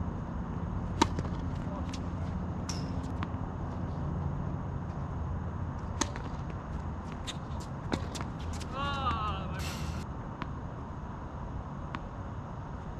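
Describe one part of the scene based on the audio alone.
Tennis balls are struck by rackets with sharp pops.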